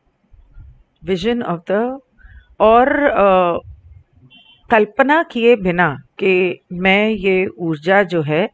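A middle-aged woman speaks calmly into a headset microphone.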